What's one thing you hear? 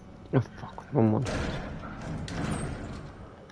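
A metal locker door swings open with a clank.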